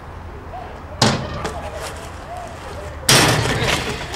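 A bicycle lands hard on stone pavement with a loud clatter.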